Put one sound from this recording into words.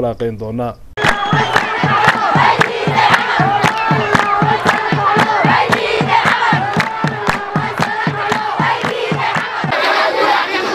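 Many hands clap in a fast, steady rhythm.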